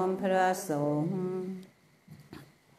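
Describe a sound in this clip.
A group of men chant together in a low, steady voice, briefly.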